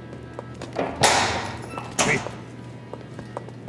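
A heavy metal gate clanks.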